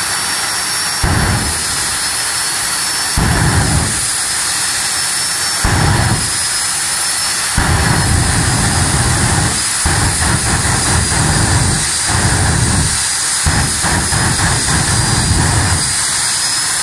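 A car engine revs loudly in short, roaring bursts.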